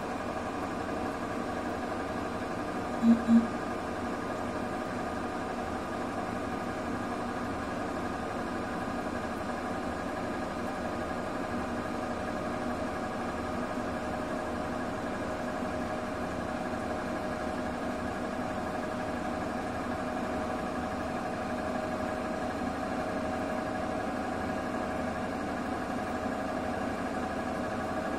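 A washing machine drum turns with a steady hum.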